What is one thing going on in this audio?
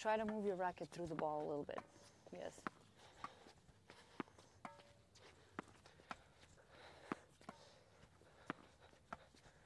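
Tennis rackets strike a ball back and forth in a quick steady rhythm.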